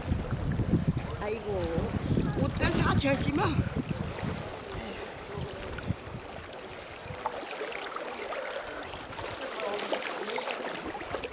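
An elderly woman laughs and talks cheerfully close by.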